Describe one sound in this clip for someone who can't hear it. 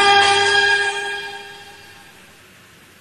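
A man sings a long held note close to a microphone, fading away.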